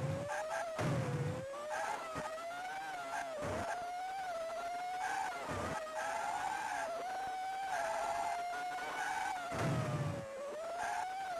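Short, harsh electronic bursts sound now and then.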